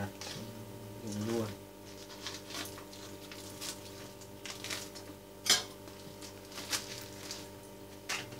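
A paper wrapper crinkles and rustles as hands unfold it.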